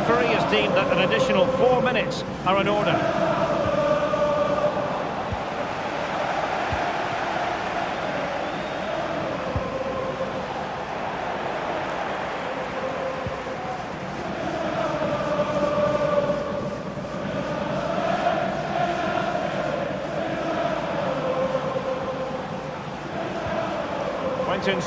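A large stadium crowd sings and chants steadily.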